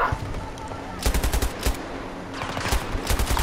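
A machine gun fires short rapid bursts close by.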